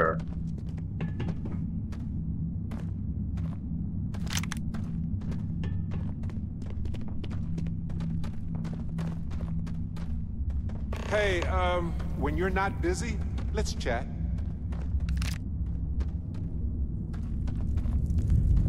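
Footsteps crunch on a rough, gritty floor.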